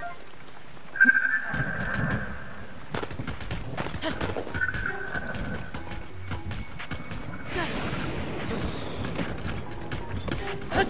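Bony hooves clatter as a skeletal horse gallops.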